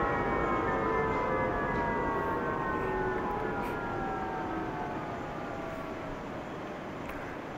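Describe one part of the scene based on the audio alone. A propeller aircraft engine winds down, its whine falling steadily in pitch.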